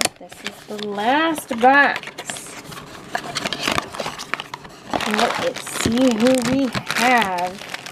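A cardboard box is torn and flapped open.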